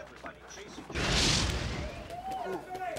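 A bobsled roars past at speed on ice.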